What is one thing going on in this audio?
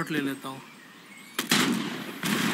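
A gun fires a sharp shot.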